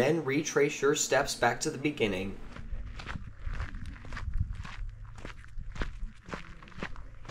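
Footsteps crunch on a sandy, gravelly trail.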